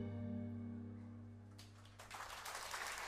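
A cello plays a low sustained note.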